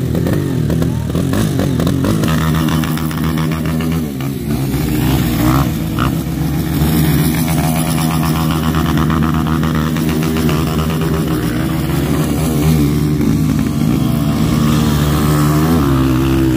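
Mud splashes under a dirt bike's wheels.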